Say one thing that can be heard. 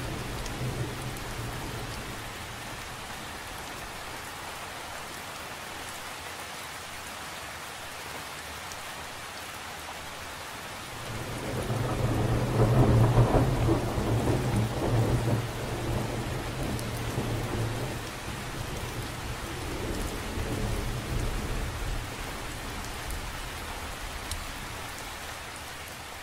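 Rain patters steadily on the surface of a lake outdoors.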